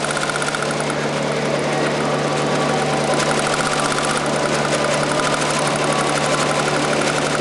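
An embroidery machine stitches with a fast, steady rattling and whirring.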